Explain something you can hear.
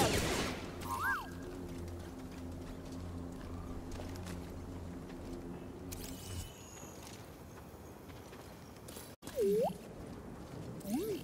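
A droid beeps and chirps.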